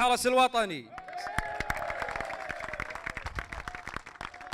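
A group of men clap their hands.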